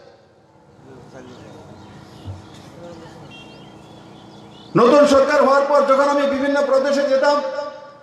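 A man speaks forcefully into a microphone over loudspeakers outdoors.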